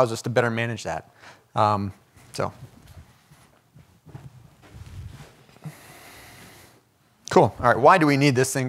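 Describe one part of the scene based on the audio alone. A man speaks calmly into a microphone, heard through a loudspeaker in a room.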